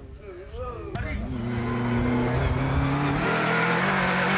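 A rally car engine roars, revving higher as the car approaches.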